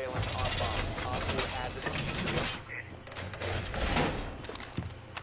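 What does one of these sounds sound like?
Wooden boards crack and splinter under heavy blows.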